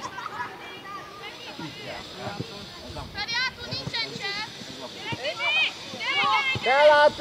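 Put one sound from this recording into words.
Children shout and call out to each other across an open field.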